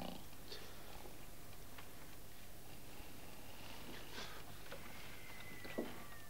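Bedsheets rustle as a person turns over in bed.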